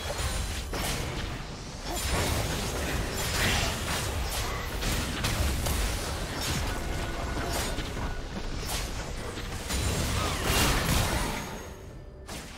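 Game spell effects whoosh and burst during a fight.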